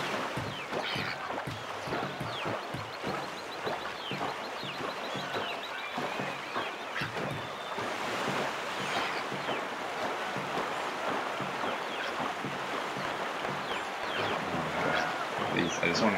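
A paddle splashes rhythmically through water.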